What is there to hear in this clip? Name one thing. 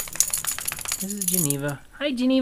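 A dog whines and howls up close.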